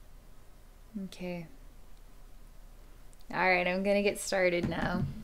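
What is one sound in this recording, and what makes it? A woman speaks softly and warmly, close to a microphone.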